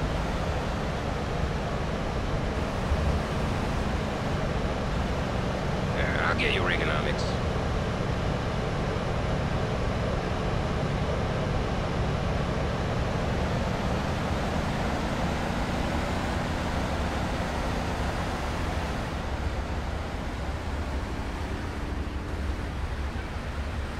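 Car engines hum steadily as traffic drives past.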